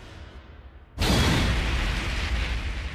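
A loud sound effect crashes in and roars on.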